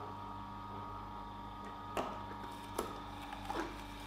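Hard roots crunch as a juicer crushes them.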